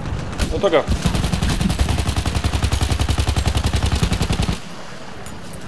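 A machine gun fires rapid bursts close by.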